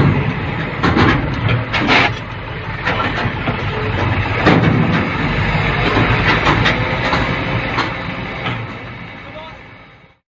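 A truck engine rumbles at idle.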